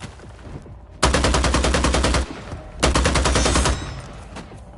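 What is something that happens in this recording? Automatic gunfire rattles in two loud, rapid bursts.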